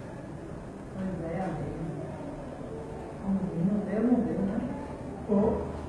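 A woman speaks close by in a calm voice.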